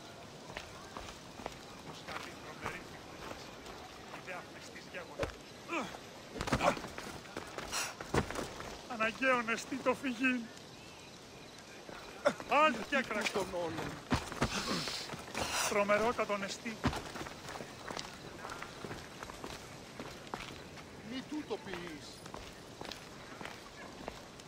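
Footsteps tread on a stone path.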